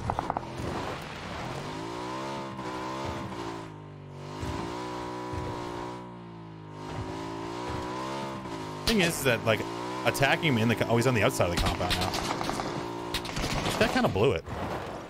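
A motorcycle engine hums and revs steadily.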